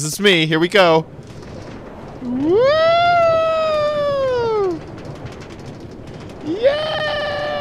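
A minecart rolls steadily along rails.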